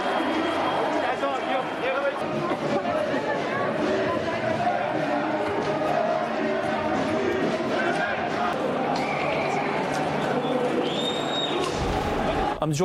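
A crowd clamours and shouts outdoors.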